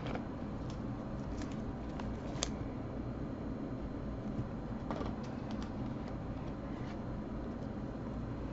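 Trading cards click and slide against each other.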